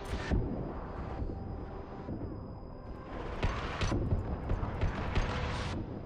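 Energy weapons fire in sharp bursts.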